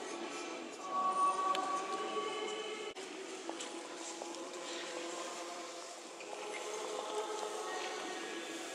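A crowd murmurs quietly in a large echoing hall.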